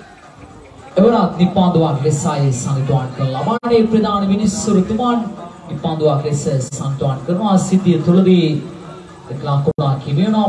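Men talk and call out with animation, outdoors.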